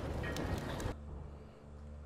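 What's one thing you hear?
Fire crackles in a burning barrel.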